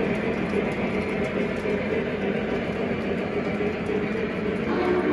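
A model train rumbles steadily along its track.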